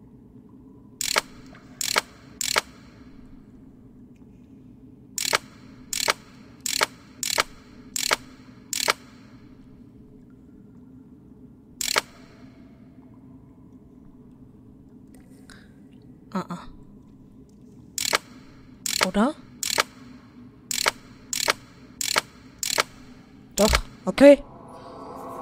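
A short bright chime sounds each time a game piece moves a step.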